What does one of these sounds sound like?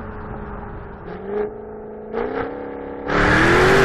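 A car engine blips sharply during quick downshifts.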